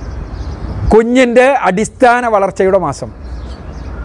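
A man speaks emphatically into a close microphone.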